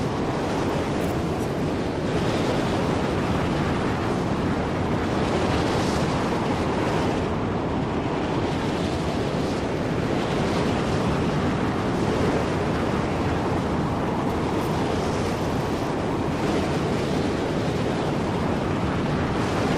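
Strong wind roars steadily in a sandstorm.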